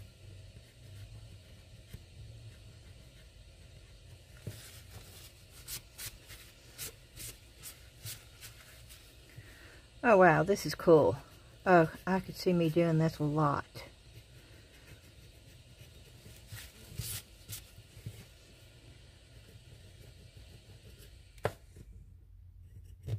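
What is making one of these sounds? A fine paintbrush strokes lightly across a surface.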